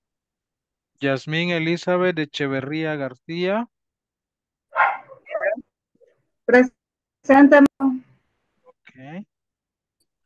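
A man speaks over an online call, with pauses.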